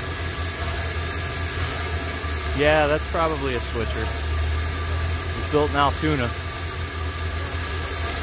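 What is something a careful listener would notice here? Steam hisses from a locomotive.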